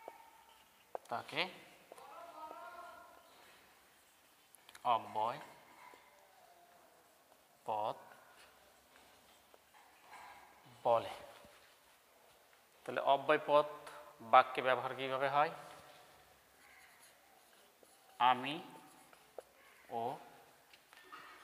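A man speaks calmly and clearly, close by, in short bursts with pauses.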